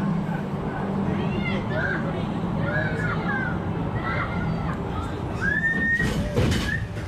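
A boy screams.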